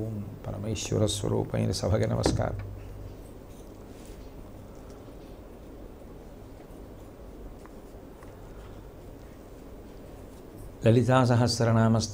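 An elderly man speaks calmly and expressively into a close microphone, with long pauses.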